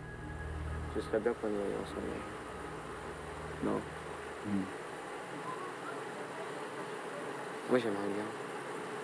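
A young man answers briefly and calmly.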